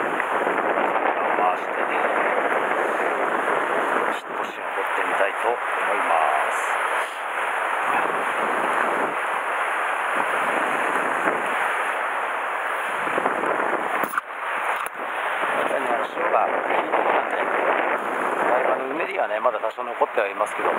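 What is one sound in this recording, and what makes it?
Wind rushes past, buffeting outdoors.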